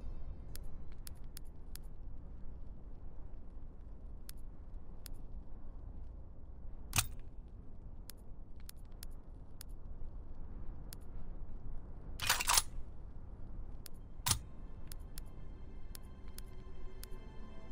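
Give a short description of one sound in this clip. Menu clicks tick softly as selections change.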